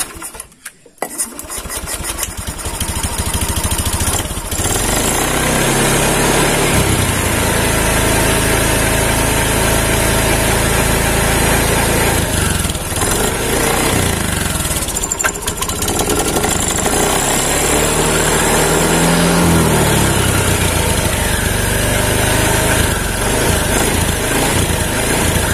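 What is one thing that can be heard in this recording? A motorcycle engine runs loudly and revs up and down.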